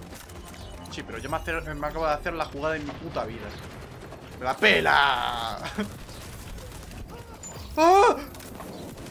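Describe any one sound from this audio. A young man talks excitedly close to a microphone.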